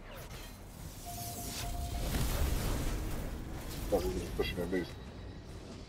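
A magic blast whooshes and booms.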